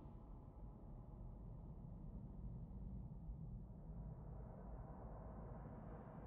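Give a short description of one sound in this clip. Wind rumbles low and steady.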